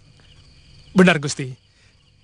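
Another young man speaks with animation, close by.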